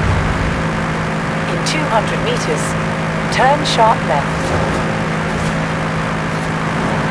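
A sports car engine drones steadily at high speed.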